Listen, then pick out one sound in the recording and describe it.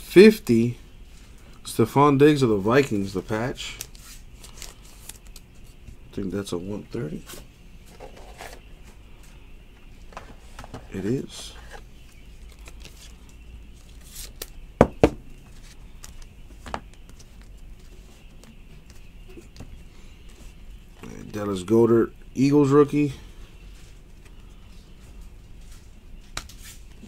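Trading cards rustle and slide against each other in someone's hands.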